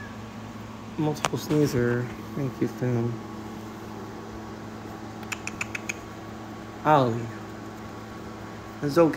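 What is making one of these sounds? A cat meows loudly and repeatedly close by.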